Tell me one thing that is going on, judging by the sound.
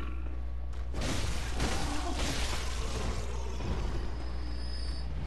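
A blade slashes and strikes a creature.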